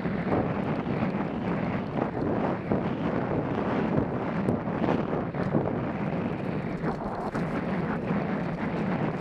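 Tyres bump and rattle over a dirt trail.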